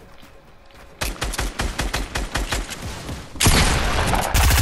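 A pickaxe strikes wood in quick, regular blows.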